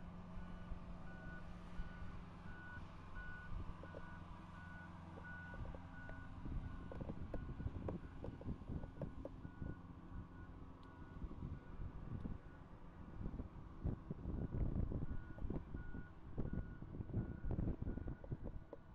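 A reversing alarm beeps steadily.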